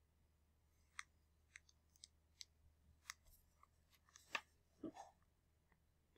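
Fingers tap lightly on a phone's touchscreen.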